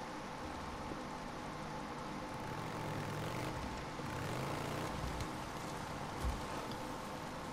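A motorcycle engine idles and revs.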